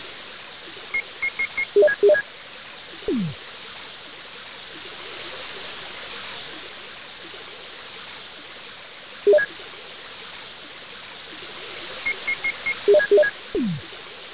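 Short electronic menu beeps chime in quick bursts.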